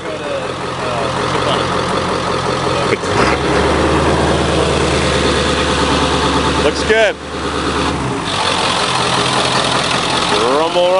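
A truck engine idles with a deep steady rumble.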